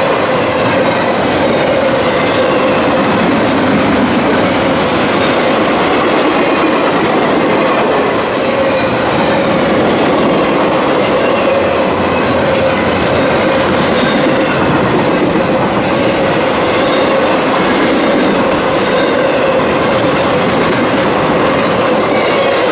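A freight train rumbles past close by, its wheels clattering and squealing on the rails.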